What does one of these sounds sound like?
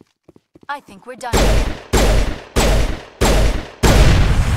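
Gunshots crack in quick, short bursts.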